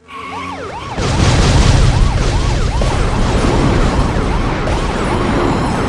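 Rocket boosters blast with a loud rushing roar.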